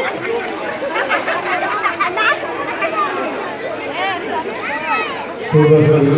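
Water splashes as children play in it.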